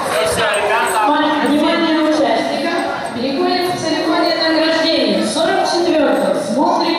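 A group of young children sing together.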